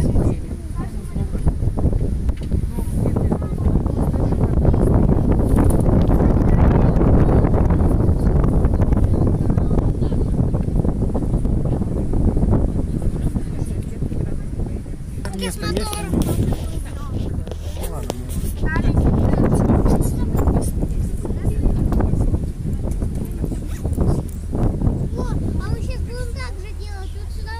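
Wind buffets the microphone in gusts outdoors.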